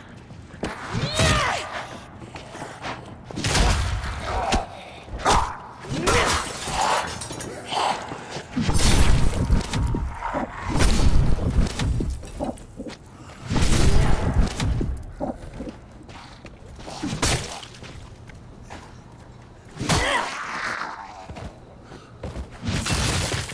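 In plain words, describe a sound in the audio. Heavy blows thud and squelch into flesh.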